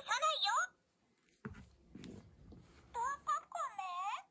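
Hands set a plush toy down on a table with a soft thump.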